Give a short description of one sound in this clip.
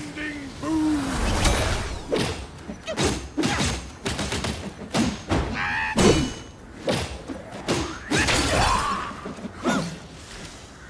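Metal blades clash and strike in quick, hard blows.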